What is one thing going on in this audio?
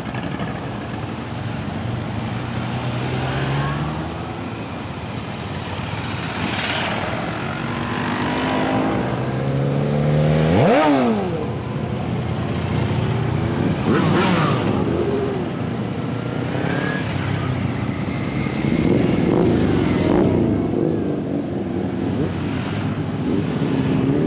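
A convoy of motorcycles rides past close by at low speed.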